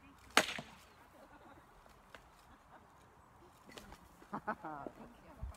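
Metal weapons clang sharply a few times outdoors.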